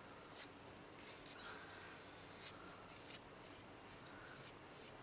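A brush swishes and scrapes across paper in quick strokes.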